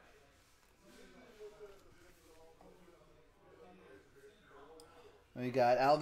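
Cards slide and tap against each other in a man's hands.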